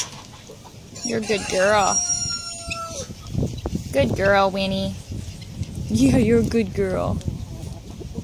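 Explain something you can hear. A young goat bleats loudly several times, close by.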